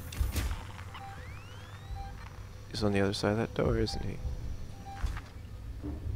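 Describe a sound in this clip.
A motion tracker beeps softly.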